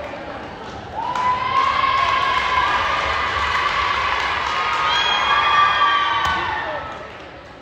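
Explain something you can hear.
A group of young women shout a team cheer together in a large echoing gym.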